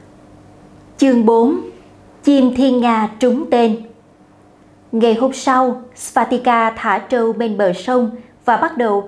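A young woman reads aloud calmly through a close microphone.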